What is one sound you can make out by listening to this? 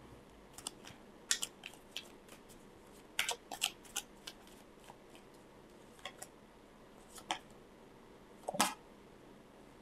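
Playing cards shuffle and flick between hands.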